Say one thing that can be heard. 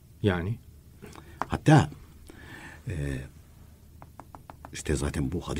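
An elderly man speaks calmly through a radio microphone.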